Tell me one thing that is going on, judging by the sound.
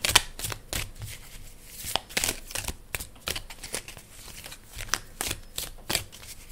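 Playing cards are shuffled by hand with soft flicks and rustles.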